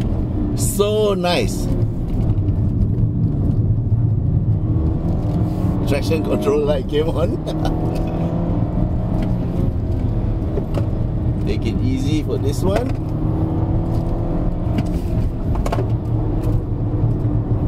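A car engine hums and revs steadily from inside the car.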